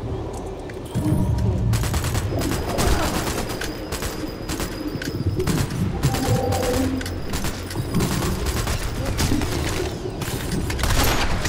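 Rifle shots crack out rapidly, one after another.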